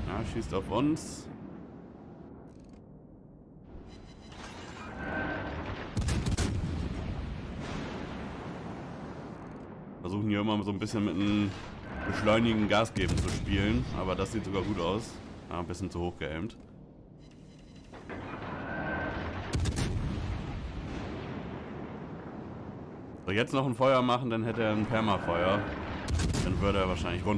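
Heavy naval guns fire with deep booming blasts.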